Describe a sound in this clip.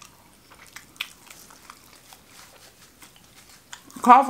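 A woman chews food with soft crunching.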